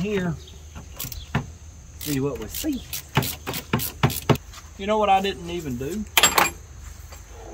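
Metal parts clink and knock under a car's hood.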